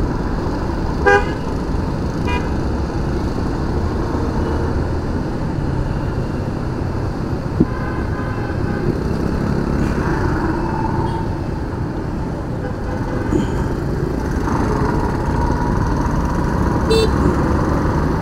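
Vehicle horns honk briefly now and then.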